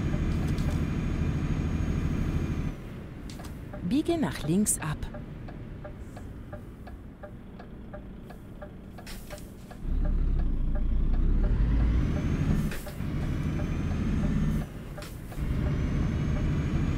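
A truck engine hums steadily.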